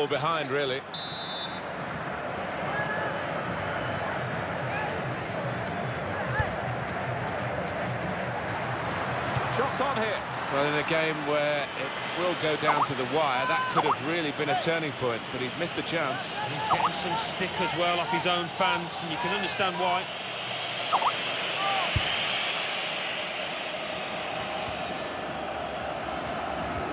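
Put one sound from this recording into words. A stadium crowd roars steadily, heard from a distance.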